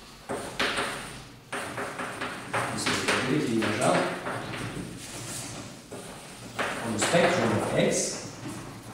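A man lectures calmly in an echoing room.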